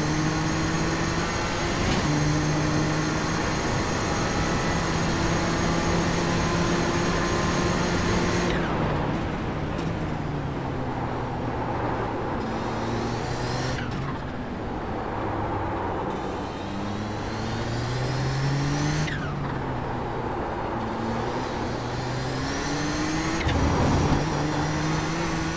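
A racing car engine roars at high speed, its pitch rising and falling as it shifts gears and brakes into corners.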